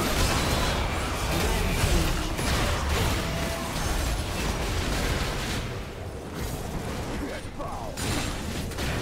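Magic blasts whoosh and crackle in a hectic fight.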